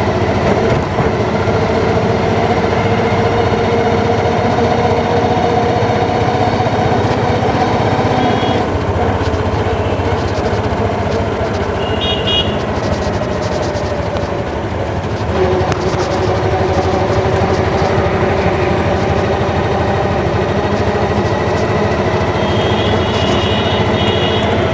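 A vehicle engine drones steadily while driving.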